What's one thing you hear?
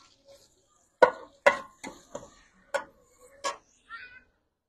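A metal ladle clanks and scrapes against a metal pan.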